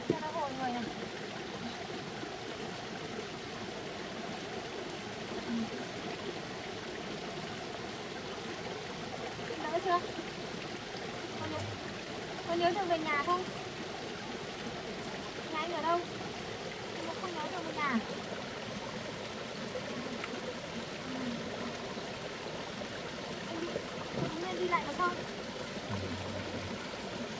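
A stream trickles over rocks nearby.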